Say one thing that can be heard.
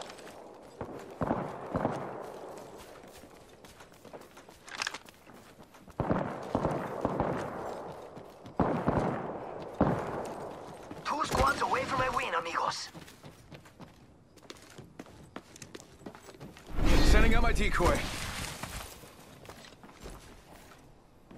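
Quick footsteps run over hard ground.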